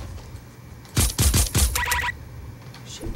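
A gun fires several loud shots in quick succession.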